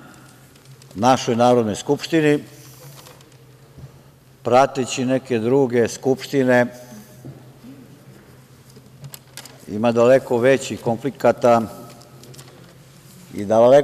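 A man speaks through a microphone in bursts, with pauses, in a large echoing hall.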